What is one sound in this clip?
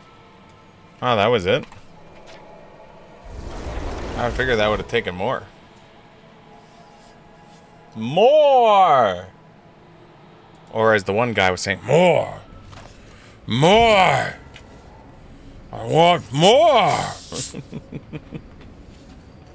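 A young man talks and exclaims with animation close to a microphone, in short bursts.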